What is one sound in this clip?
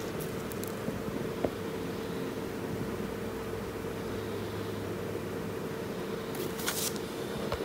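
Leafy stems rustle softly as fingers handle them.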